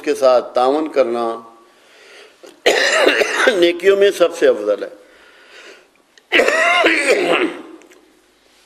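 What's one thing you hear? An elderly man speaks calmly and earnestly, close to a microphone.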